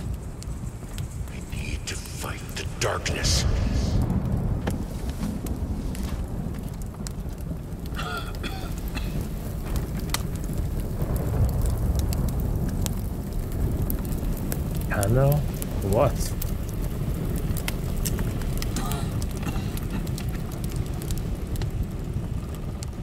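A fire rumbles low and crackles.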